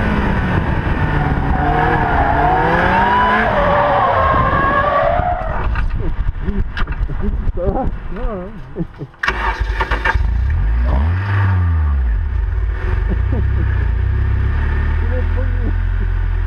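A race car engine roars and revs up and down at close range.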